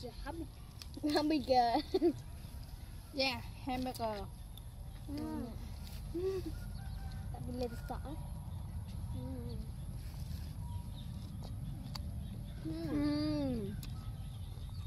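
A young girl talks calmly close by.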